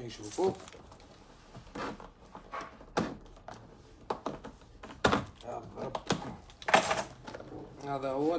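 A plastic box clicks and taps as it is handled.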